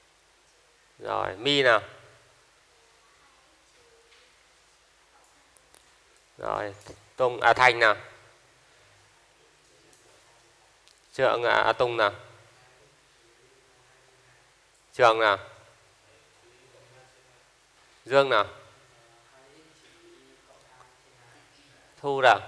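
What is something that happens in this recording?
A young man speaks calmly in short bursts through a clip-on microphone, with long pauses between them.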